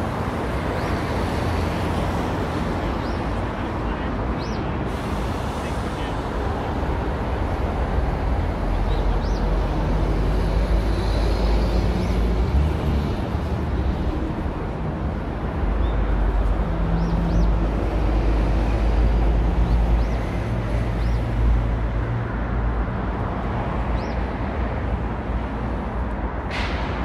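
City traffic rumbles steadily along a nearby street.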